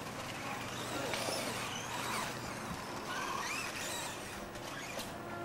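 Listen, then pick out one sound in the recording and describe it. Toy car tyres crunch over loose dirt.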